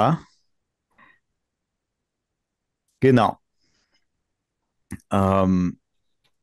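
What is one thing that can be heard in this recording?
A man speaks in short bursts over an online call, with pauses between.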